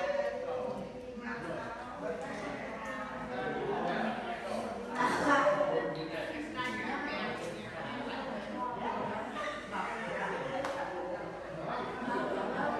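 A middle-aged woman speaks calmly and clearly nearby.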